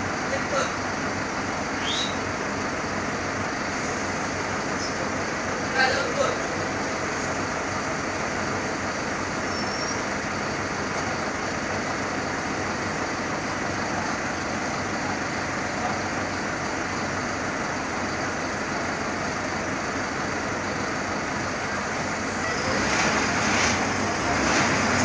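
A bus engine hums and rattles steadily while driving.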